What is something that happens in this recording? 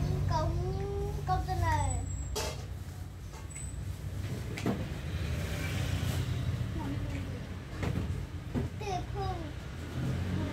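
A woman talks softly nearby.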